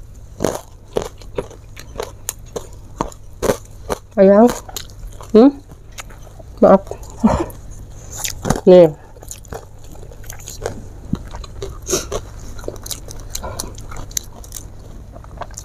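Fingers tear and squish wet food close to a microphone.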